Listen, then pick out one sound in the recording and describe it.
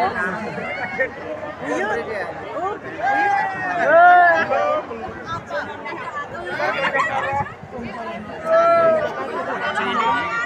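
A woman wails and sobs loudly nearby.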